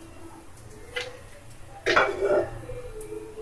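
A metal pan clatters against a stove.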